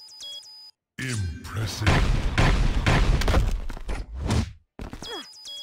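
Explosive blasts boom and crackle.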